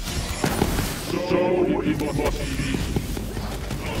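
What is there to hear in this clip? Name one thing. Energy blasts explode with a loud burst.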